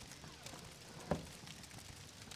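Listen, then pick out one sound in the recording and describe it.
A wooden door opens with a thud.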